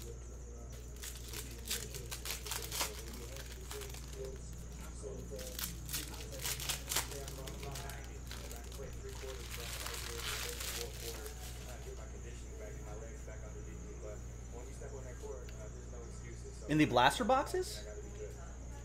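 Cardboard trading cards rustle and slap as hands shuffle through them.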